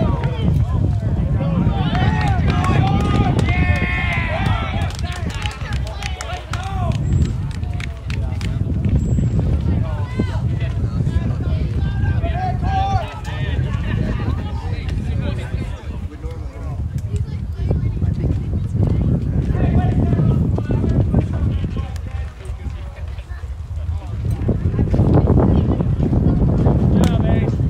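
Young men call out to each other in the distance, outdoors.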